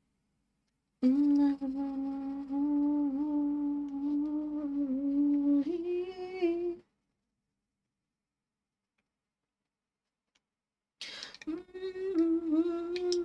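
A young woman sings into a nearby microphone.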